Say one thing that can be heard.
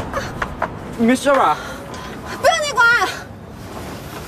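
A young man answers curtly, close by.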